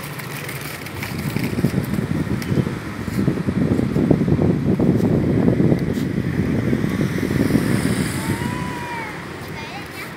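Plastic tricycle wheels rumble over paving stones.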